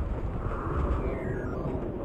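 Laser beams hum as they fire.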